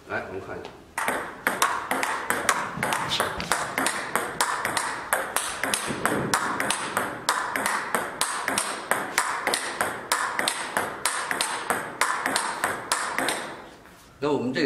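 A ping-pong ball clicks rapidly against a paddle and table.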